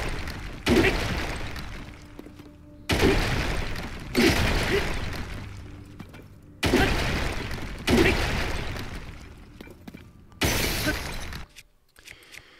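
Chunks of rock crumble and tumble down.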